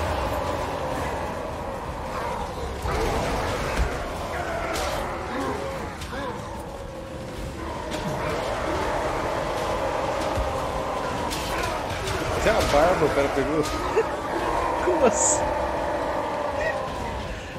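Weapons clash and armies roar in a battle.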